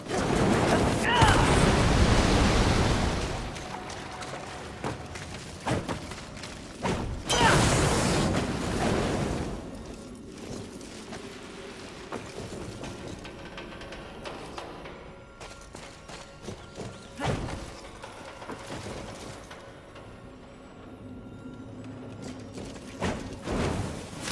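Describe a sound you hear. A fiery explosion roars and crackles.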